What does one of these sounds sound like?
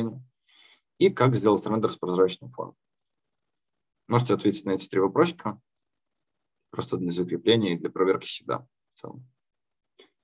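A young man speaks calmly through a microphone on an online call, in short bursts with pauses.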